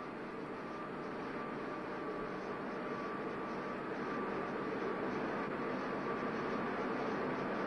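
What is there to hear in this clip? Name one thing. A steam engine chugs and rumbles, growing louder as it draws near.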